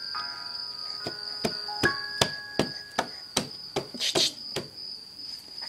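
A baby taps and slaps on a laptop keyboard.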